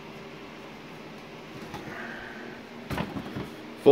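A refrigerator door is pulled open.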